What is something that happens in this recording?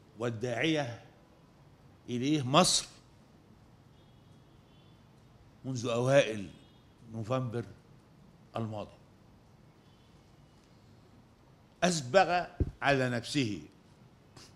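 An elderly man speaks slowly and formally into a microphone, with long pauses.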